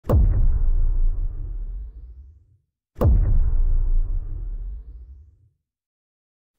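Two loud explosions boom one after another, each rumbling away.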